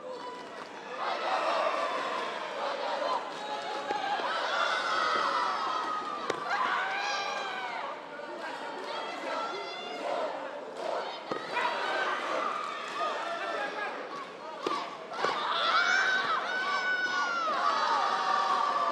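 Young women shout loudly and sharply while sparring.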